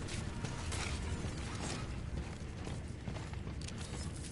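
Heavy armored footsteps thud on a metal floor.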